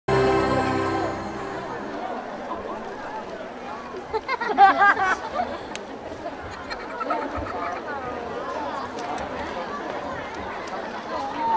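A large outdoor crowd murmurs and chatters steadily.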